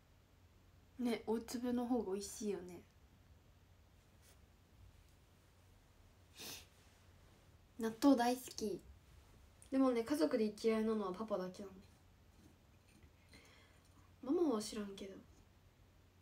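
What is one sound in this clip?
A young woman speaks calmly and close by, in short bursts.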